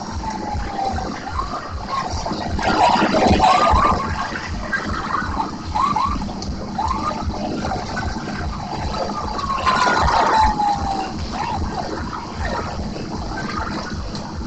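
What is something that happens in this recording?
An arcade racing game plays loud engine roars and crashing effects through loudspeakers.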